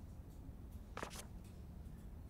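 A short soft click sounds as a page turns.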